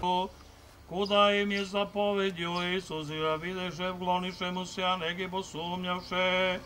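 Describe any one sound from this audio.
An elderly man chants prayers aloud.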